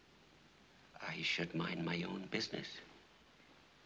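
A man speaks calmly and up close.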